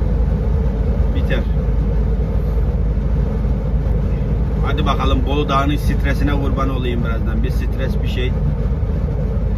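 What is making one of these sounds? A vehicle's engine rumbles steadily while driving.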